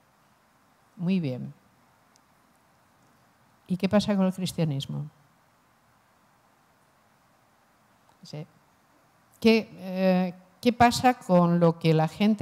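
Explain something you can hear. A middle-aged woman speaks into a microphone, calmly and with pauses, heard through a loudspeaker.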